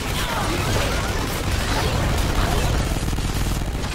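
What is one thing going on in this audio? A pistol fires rapid shots.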